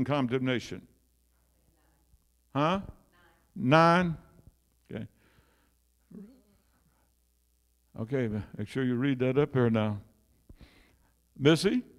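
An elderly man preaches with animation through a microphone in an echoing hall.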